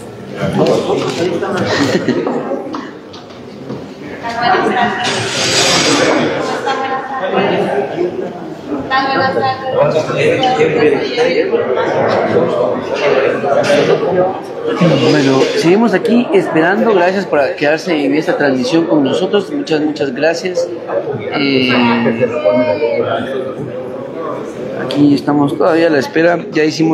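A man talks on a phone close by.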